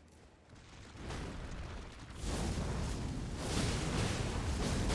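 A large beast roars and bellows.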